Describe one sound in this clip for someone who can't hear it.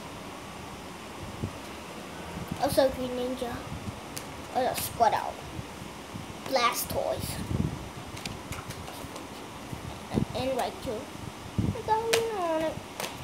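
Cards rustle and flick in a boy's hands.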